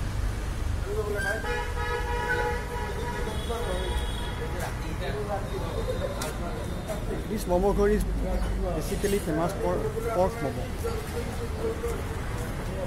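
A man speaks close to a phone microphone.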